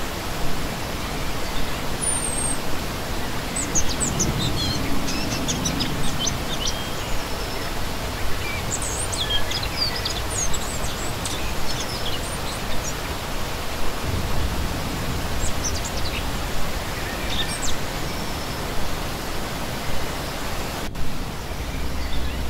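A shallow stream rushes and splashes steadily over rocks outdoors.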